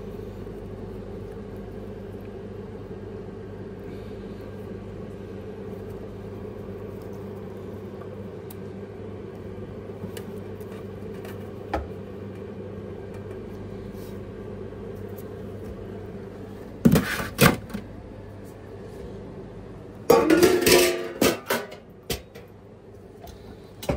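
A refrigerated counter hums steadily.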